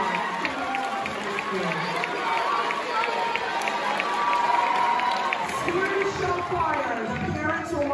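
A crowd of young people chatters nearby.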